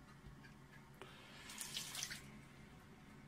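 Water splashes as a hand rinses in the sink.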